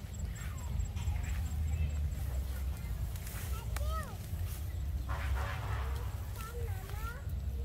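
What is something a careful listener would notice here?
A cow tears and chews grass close by.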